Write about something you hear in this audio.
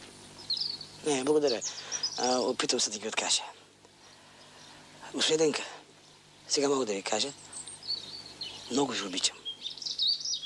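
A man speaks slowly, with pauses.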